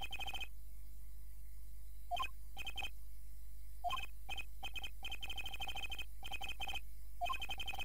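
Short electronic blips chirp rapidly in bursts.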